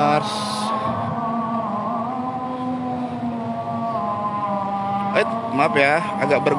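Motorcycle engines roar and rev loudly.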